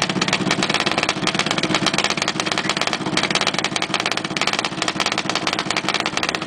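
A large diesel engine runs close by with a fast, steady clatter.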